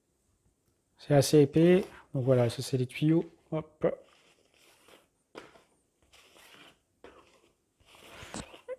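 Stiff cardboard sheets rustle and slide against each other.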